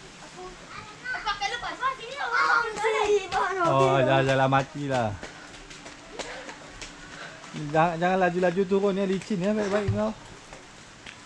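A young child shouts and calls out nearby.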